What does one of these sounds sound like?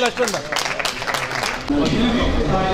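A crowd claps and applauds.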